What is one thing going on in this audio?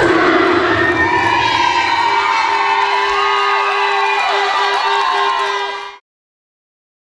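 A crowd cheers and whistles loudly in a large echoing hall.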